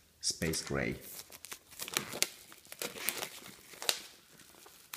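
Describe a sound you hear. Plastic wrapping crinkles and rustles.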